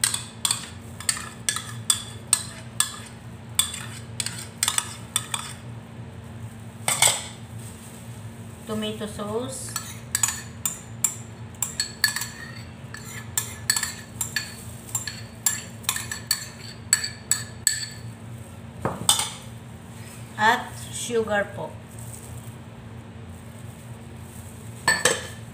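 A spoon clinks and scrapes against bowls.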